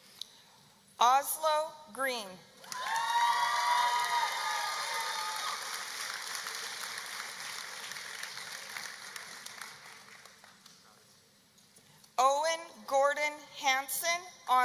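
A woman reads out names over a loudspeaker in a large echoing hall.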